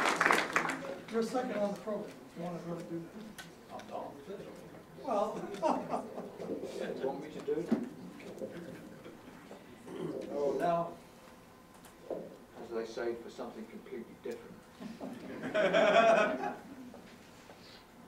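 An elderly man speaks calmly through a microphone in a large room.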